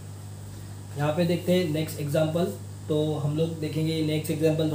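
A young man speaks calmly and clearly, explaining.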